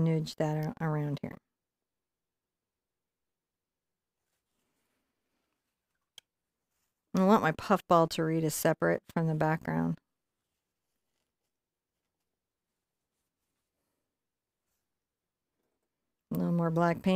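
A woman talks calmly into a close microphone, in short bursts with pauses.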